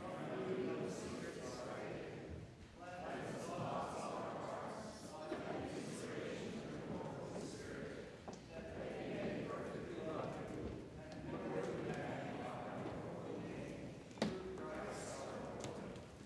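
A man reads aloud steadily through a microphone in a large echoing room.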